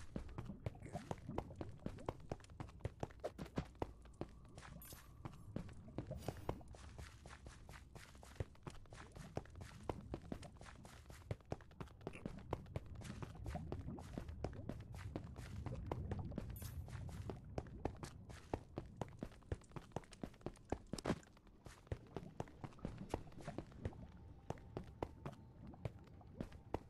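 A low rumble of lava bubbles steadily.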